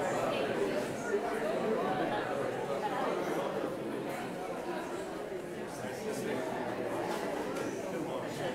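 A crowd of men and women chat and greet each other all at once in a large echoing hall.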